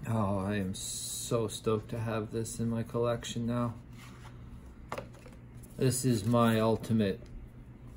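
Paper rustles as a box is handled.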